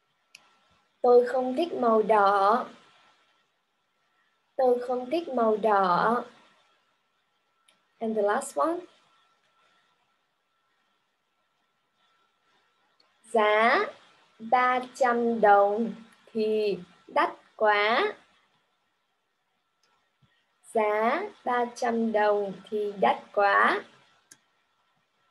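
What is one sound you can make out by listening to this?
A young woman speaks clearly and with animation over an online call, pausing between phrases.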